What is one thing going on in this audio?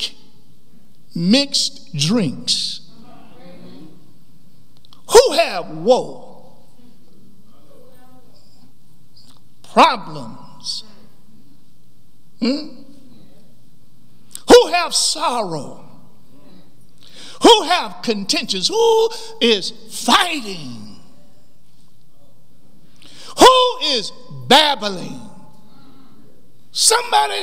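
A middle-aged man preaches with animation into a microphone, in bursts with pauses, in a slightly echoing hall.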